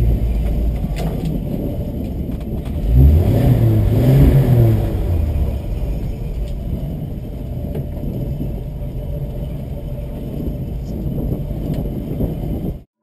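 Tyres crunch and scrape over rough rock.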